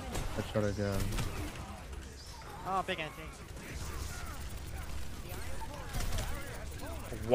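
Gunfire and blasts ring out in a video game.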